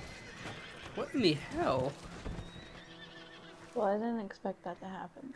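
A horse whinnies loudly in distress.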